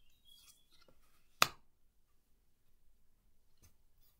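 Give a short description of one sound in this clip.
A card is laid down on a cloth with a soft tap.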